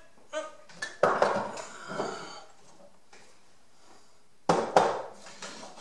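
A wooden strip knocks and clatters against a hard floor.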